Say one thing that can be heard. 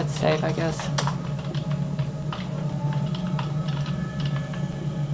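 Computer keys clatter under quick typing.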